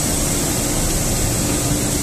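Water sprays and splashes heavily inside a machine.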